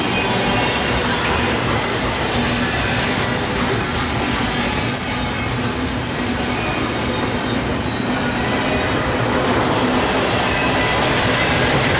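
A freight train rumbles past close by with a loud, steady roar.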